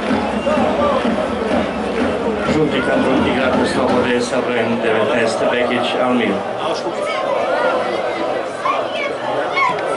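Men shout to each other across an outdoor field.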